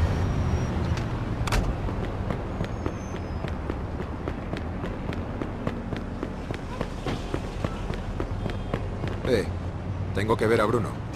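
Footsteps run quickly on pavement.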